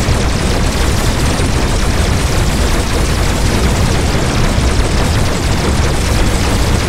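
Explosions rumble deep and heavy.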